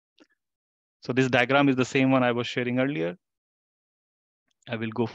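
A man speaks calmly into a microphone, explaining.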